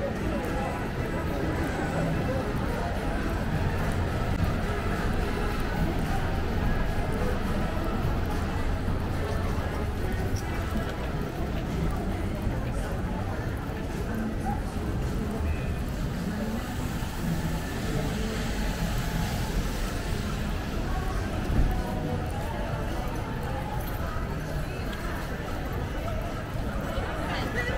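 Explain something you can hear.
Light rain patters on umbrellas.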